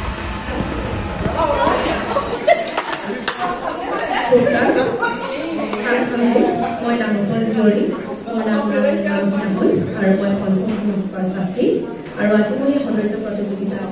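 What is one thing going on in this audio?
A woman sings through loudspeakers.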